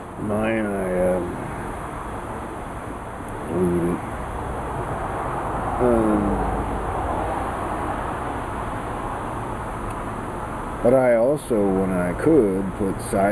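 A middle-aged man speaks close by in short, relaxed bursts.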